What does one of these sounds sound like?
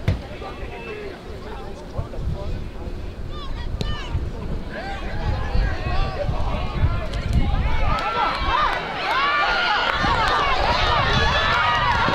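A crowd of spectators shouts and cheers nearby, growing louder and more excited.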